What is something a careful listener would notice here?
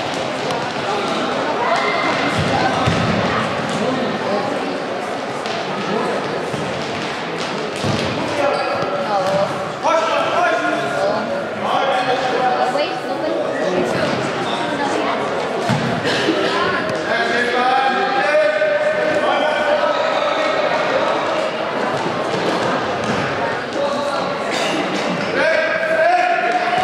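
Young boys shout to each other in a large echoing hall.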